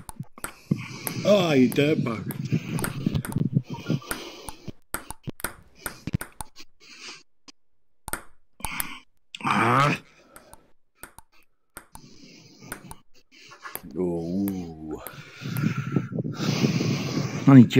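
A ping pong ball clicks against paddles and a table in a quick back-and-forth rally.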